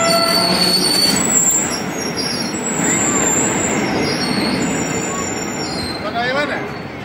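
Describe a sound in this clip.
Freight wagons rumble and clatter along rails close by.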